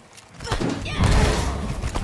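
A fiery explosion bursts in a video game.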